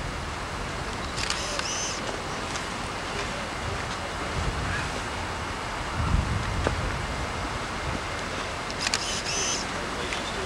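Boots shuffle and step on grass outdoors.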